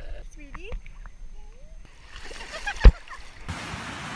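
Water splashes around swimmers.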